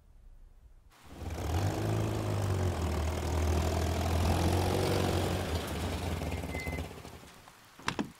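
A car engine rumbles as a car drives slowly over wet cobbles.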